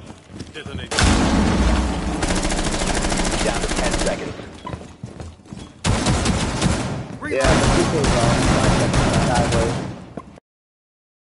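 Gunfire rattles loudly in rapid bursts.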